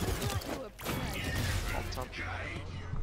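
A weapon fires in rapid bursts.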